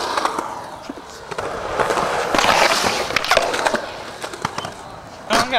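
Skateboard wheels roll and grind on concrete.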